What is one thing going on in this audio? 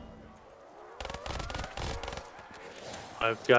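A pistol fires a quick series of shots.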